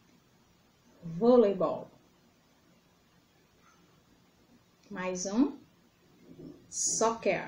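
A young woman speaks calmly and clearly, close to a microphone.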